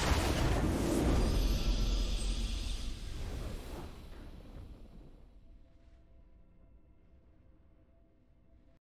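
A triumphant game fanfare rings out and slowly fades away.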